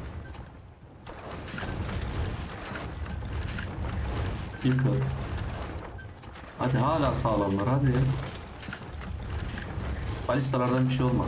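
Weapons clash and clatter in a busy battle.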